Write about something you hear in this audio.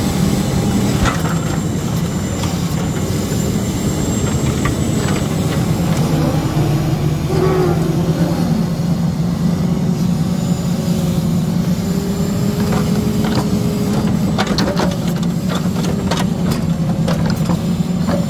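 Logs knock and clatter against each other.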